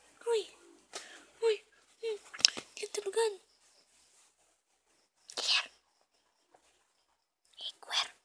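A hand rubs and pats on soft fabric with a rustle.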